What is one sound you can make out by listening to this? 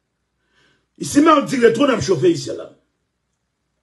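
A man speaks briefly and clearly into a close microphone.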